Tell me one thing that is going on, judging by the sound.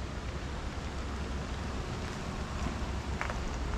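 A truck engine rumbles low and steady as it drives slowly past.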